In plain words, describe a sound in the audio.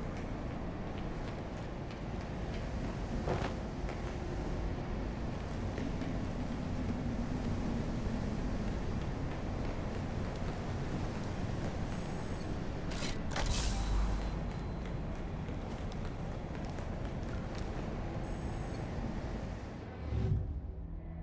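Footsteps clang on metal grating.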